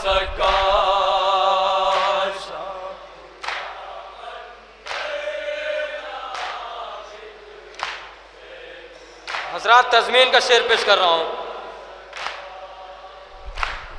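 A group of young men chant loudly together into a microphone.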